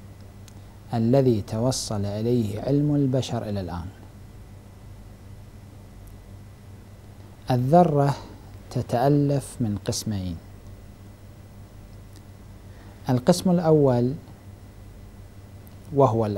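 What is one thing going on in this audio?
A man speaks calmly and with pauses into a close microphone.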